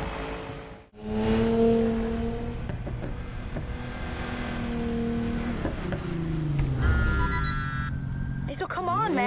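A car engine idles with a deep rumble and revs up and down.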